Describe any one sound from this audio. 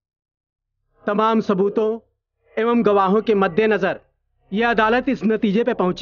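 An elderly man speaks sternly and with authority.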